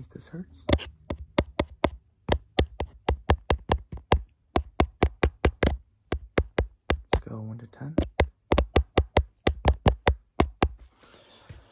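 Rapid tapping and clicking sounds close to the microphone.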